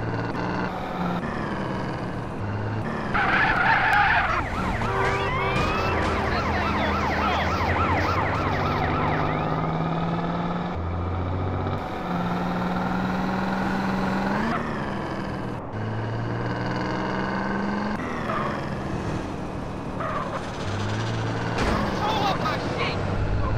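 A car engine roars and hums steadily, rising and falling in pitch as it changes gear.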